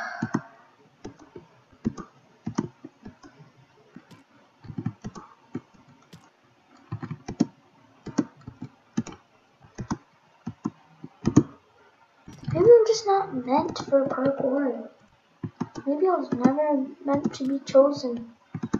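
Video game footsteps tap on blocks as a player jumps.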